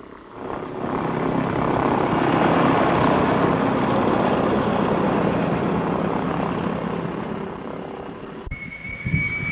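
A seaplane engine roars loudly as the plane moves across the water.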